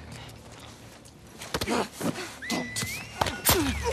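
Leaves and ferns rustle as someone crouches and moves through them.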